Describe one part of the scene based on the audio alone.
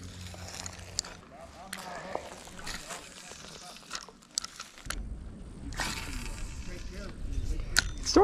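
A fishing reel clicks and whirs as it is wound.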